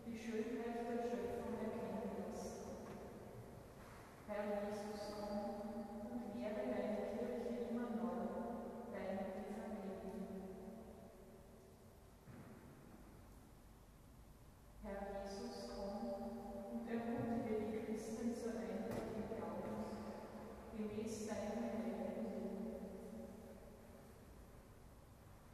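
A choir of men chants slowly together in a large echoing church.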